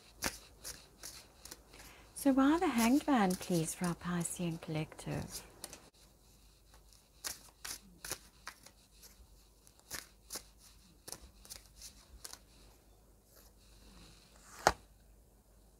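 Playing cards riffle and flick as they are shuffled close by.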